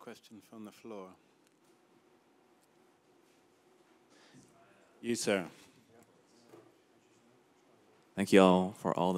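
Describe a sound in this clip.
A man speaks into a microphone, heard over loudspeakers in a large hall, in short bursts with pauses.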